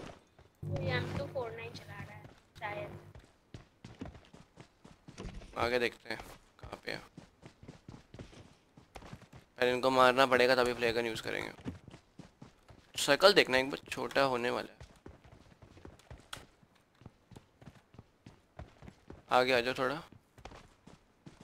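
Footsteps patter quickly on dirt and grass.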